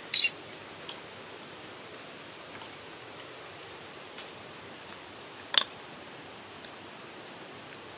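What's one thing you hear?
A knife scrapes and cuts through soft flesh.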